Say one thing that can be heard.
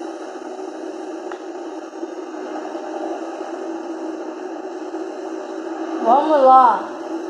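A helicopter's rotor whirs steadily through a small speaker.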